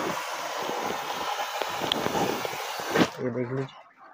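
Water runs from a tap into a plastic bag.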